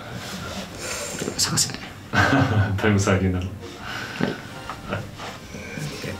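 Young men laugh close to a microphone.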